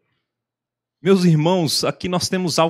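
A young man speaks clearly through a microphone.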